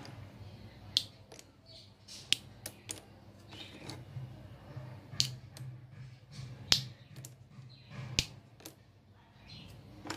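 Wooden sticks clack and click as a hand picks through them.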